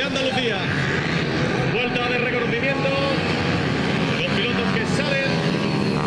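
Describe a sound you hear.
Small motorcycles speed away and fade into the distance.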